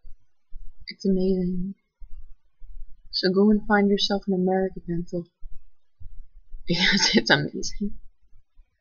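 A young woman speaks casually close to the microphone.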